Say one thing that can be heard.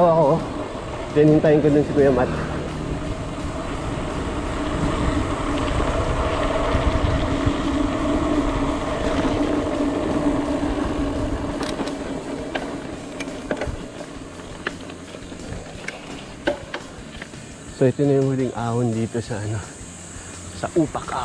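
Bicycle tyres roll over a rough road.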